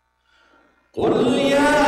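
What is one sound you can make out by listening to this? A man chants loudly into a microphone in an echoing hall.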